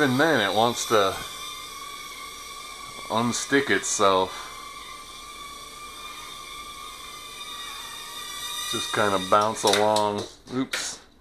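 A small drone's propellers whine steadily as it hovers.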